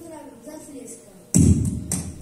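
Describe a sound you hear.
A child speaks on a stage in a large echoing hall.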